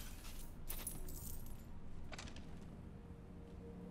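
A metal weapon clanks as it is picked up and swapped.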